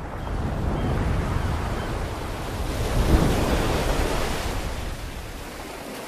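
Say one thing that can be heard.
Sea waves break and wash over a rocky shore.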